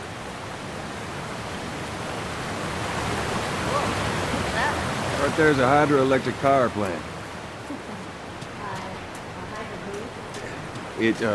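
Water rushes steadily over a weir nearby.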